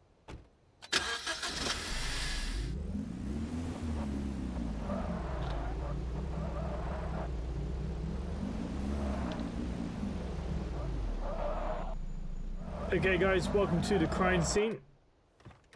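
A car engine starts and hums as the car drives, revving up and down.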